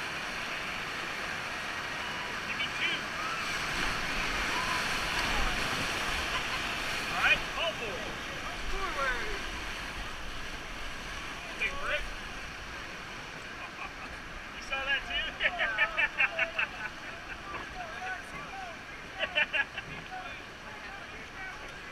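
Whitewater rapids roar and churn close by.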